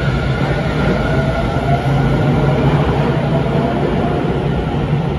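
A train rumbles and rolls steadily past, echoing in an enclosed space.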